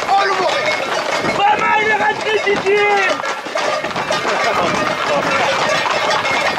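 Horse hooves clatter on a road.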